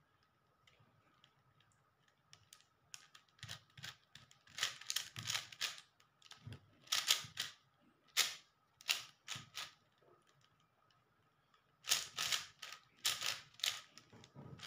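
Plastic puzzle cube layers click and rattle in quick bursts of turns.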